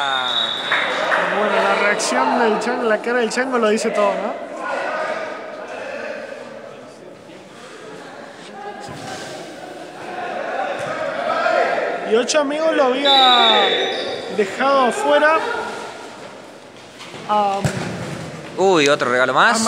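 Shoes squeak sharply on a court floor in an echoing hall.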